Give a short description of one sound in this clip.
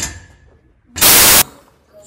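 Static hisses loudly.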